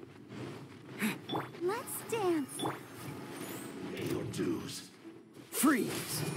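Magical blasts whoosh and crackle.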